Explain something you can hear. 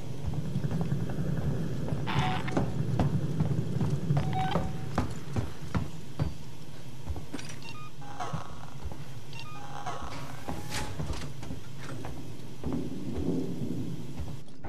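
Footsteps clang on a metal floor.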